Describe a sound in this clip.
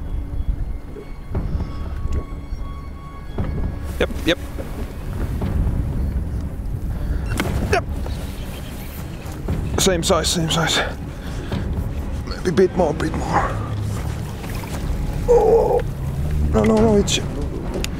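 Wind rumbles over an open boat on the water.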